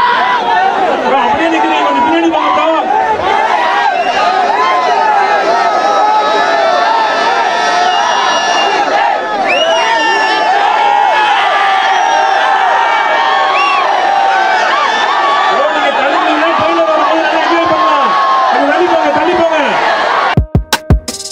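A large crowd of young men cheers and shouts loudly.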